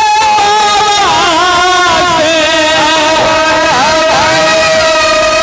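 A man sings loudly into a microphone, held long and wavering, through loudspeakers.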